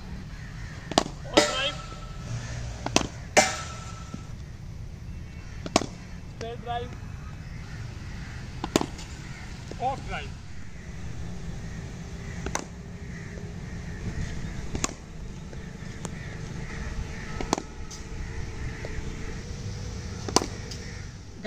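A cricket bat sharply strikes a ball outdoors.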